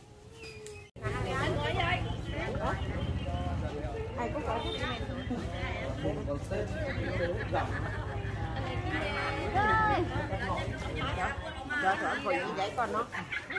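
Several women talk with animation close by.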